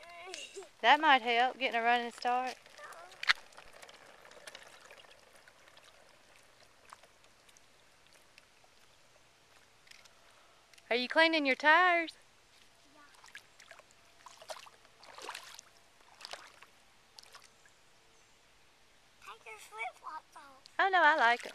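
A small child calls out in a high, sing-song voice.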